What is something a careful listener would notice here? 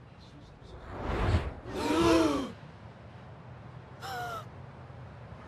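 A woman sings close by.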